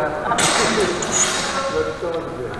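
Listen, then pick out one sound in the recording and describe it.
Steel blades clash and ring.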